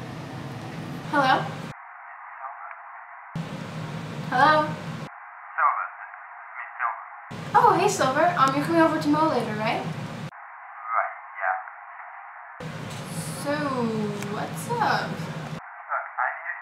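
A young woman talks calmly into a phone, close by.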